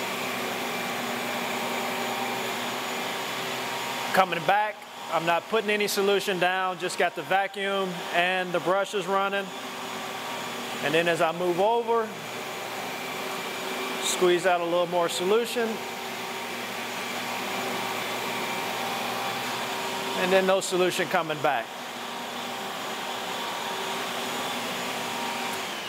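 A floor sanding machine hums steadily as it grinds across a wooden floor.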